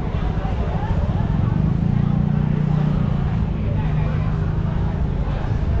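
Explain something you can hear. A crowd of people chatters nearby outdoors on a busy street.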